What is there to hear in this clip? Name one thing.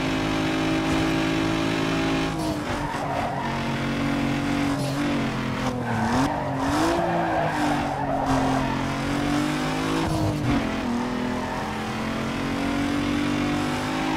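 A racing car engine roars steadily, its pitch dipping and rising as it shifts and slows for corners.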